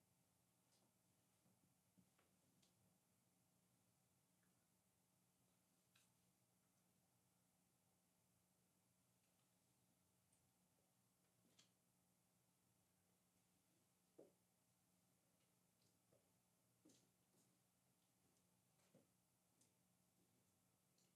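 A cloth quietly rubs and taps against a small hard object.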